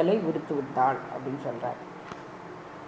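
An elderly woman speaks calmly close to a microphone.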